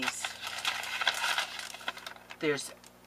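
A plastic package crinkles in hands.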